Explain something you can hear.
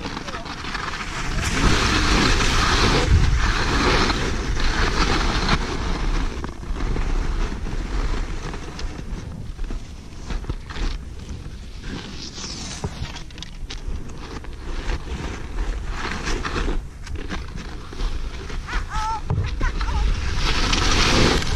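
Skis scrape and hiss over crusty snow.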